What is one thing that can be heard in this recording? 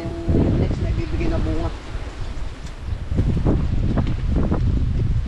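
Leaves rustle as a man picks gourds.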